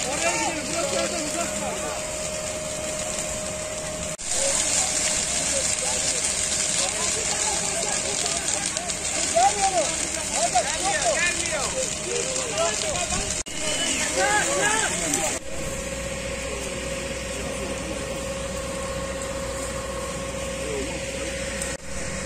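A large fire burns through a wheat field outdoors, roaring and crackling.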